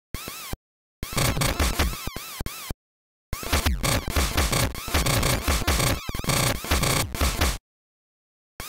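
Electronic crunching blasts sound as robots clash.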